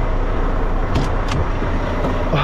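A truck's door latch clicks open.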